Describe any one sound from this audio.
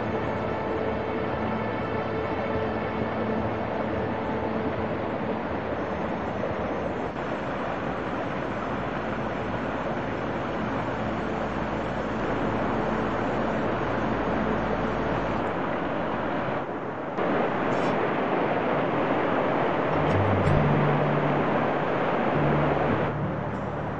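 Water rushes and splashes over rocks in a stream.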